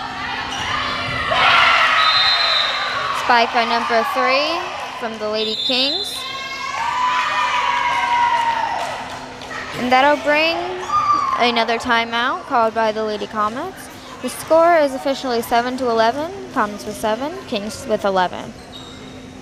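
Young women shout and cheer with animation.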